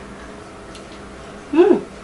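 A woman chews food.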